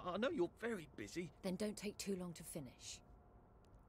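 A woman speaks calmly and theatrically, close by.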